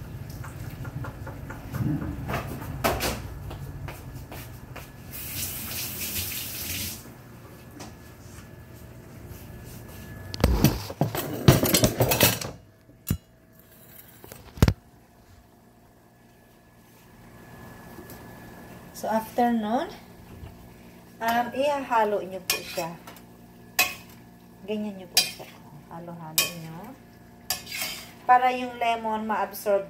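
A spatula scrapes and clatters against a pan.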